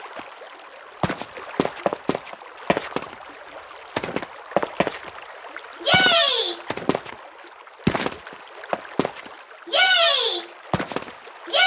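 Footsteps tap on stone as a small character runs.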